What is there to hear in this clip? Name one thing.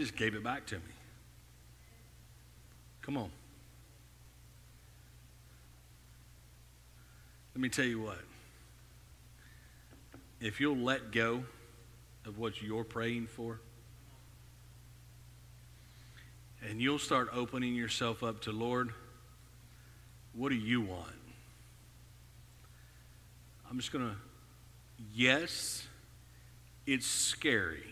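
A man speaks slowly and calmly through a microphone, pausing often between phrases.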